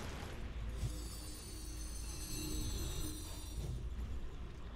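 A magic beam crackles with a high shimmering ring.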